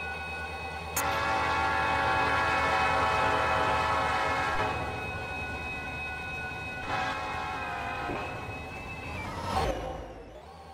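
A train horn blares loudly in long blasts.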